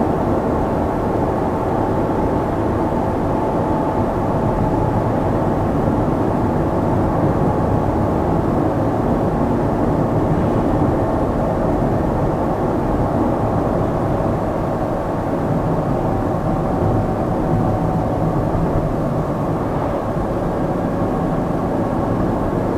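Tyres roll steadily on asphalt.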